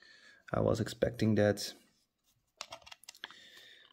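A small plastic toy car clicks softly as it is set onto a plastic stand.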